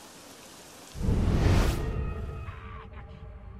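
A body drops and lands with a heavy thump.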